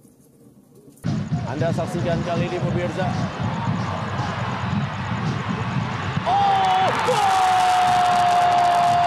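A large stadium crowd cheers and chants.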